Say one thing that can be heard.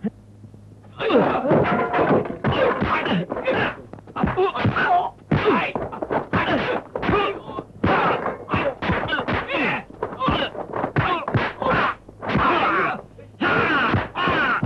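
Men grunt and shout while fighting.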